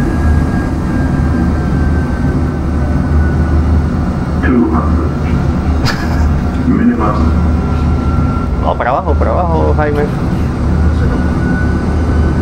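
A steady low engine rumble drones throughout.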